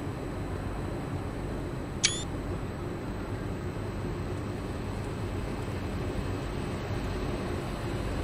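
A train's motor hums steadily at a standstill.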